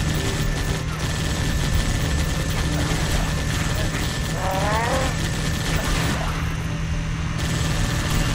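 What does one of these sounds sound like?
Gunfire and explosions rumble steadily in a battle.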